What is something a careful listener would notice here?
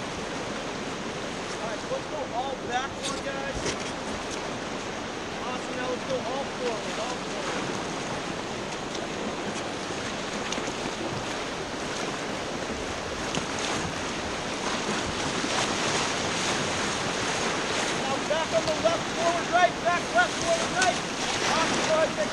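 Whitewater rapids rush and roar steadily close by.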